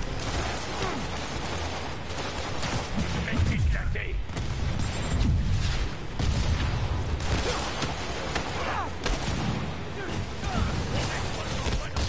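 Punches and impacts thud during a video game fight.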